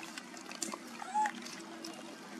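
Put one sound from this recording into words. A baby monkey gives a short, faint squeak.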